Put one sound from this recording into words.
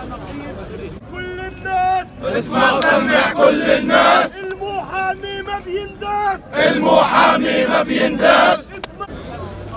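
Men chant loudly together nearby.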